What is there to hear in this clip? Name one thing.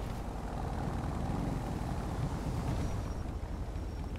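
A motorcycle engine rumbles nearby.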